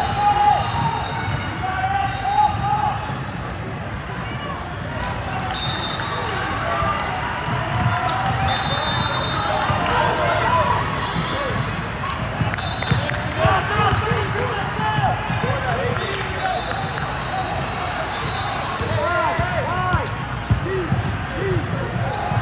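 A crowd of spectators chatters throughout a large echoing hall.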